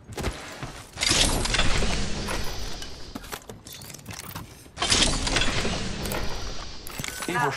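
A metal bin creaks and clanks open.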